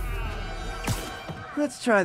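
A sharp impact thuds and splatters.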